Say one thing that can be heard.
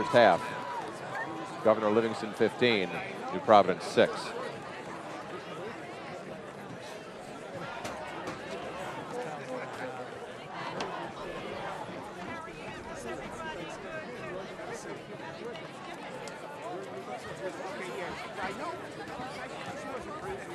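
Spectators nearby chatter and call out outdoors.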